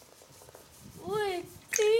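A young boy calls out briefly nearby.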